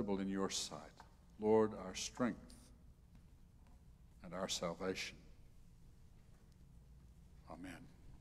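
An elderly man speaks calmly through a microphone in an echoing room.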